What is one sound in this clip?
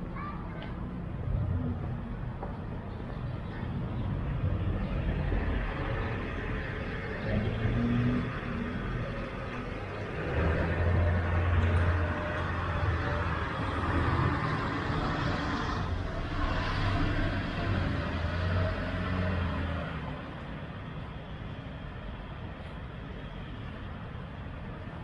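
Traffic hums steadily along a street nearby.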